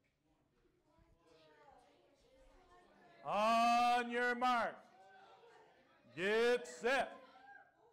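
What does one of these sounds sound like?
A man speaks into a microphone, then calls out loudly in long, drawn-out shouts.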